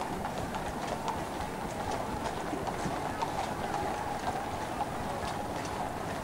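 Carriage wheels roll over the road.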